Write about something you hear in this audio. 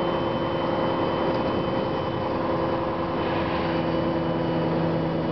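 A bus rattles gently as it rolls over the road.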